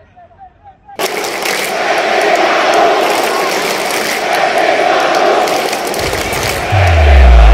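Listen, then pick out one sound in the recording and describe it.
A large crowd chants and roars loudly in a stadium.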